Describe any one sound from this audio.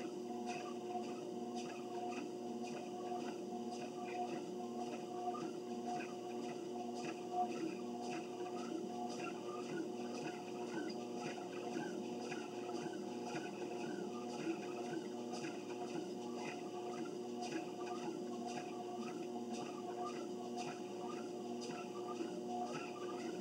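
Footsteps thud in a steady rhythm on a treadmill belt.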